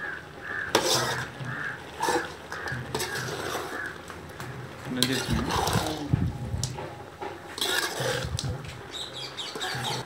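A metal spatula scrapes and stirs inside the pan.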